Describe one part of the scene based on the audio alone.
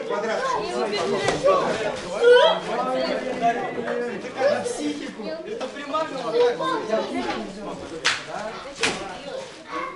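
Foam mats thud as they are moved and dropped.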